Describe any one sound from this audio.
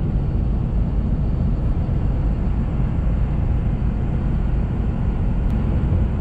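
Tyres roll steadily on the road inside a moving car.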